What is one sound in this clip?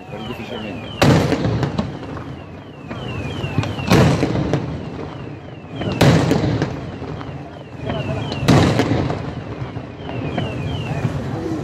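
Fireworks burst with loud booms that echo across open water.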